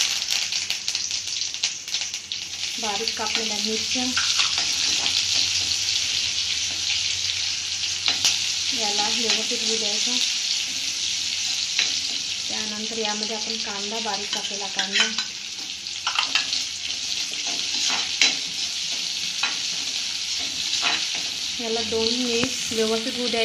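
Food sizzles steadily in hot oil.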